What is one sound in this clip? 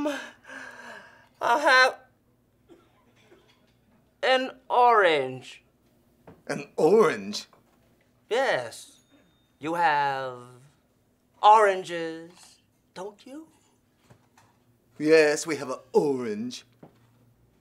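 A middle-aged man speaks with surprise and animation, close by.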